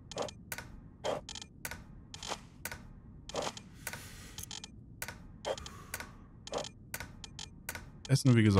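Short, sharp clicks sound again and again.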